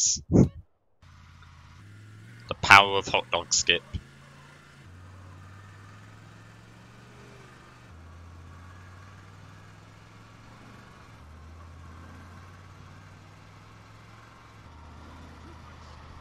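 A car engine hums steadily, shifting pitch as the car speeds up and slows down.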